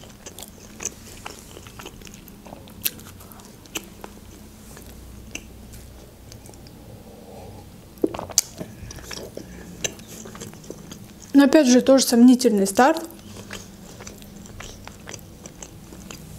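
A young woman chews bread softly close to a microphone.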